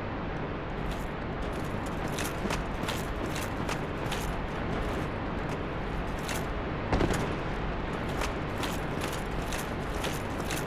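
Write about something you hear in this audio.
Armoured footsteps clank on stone.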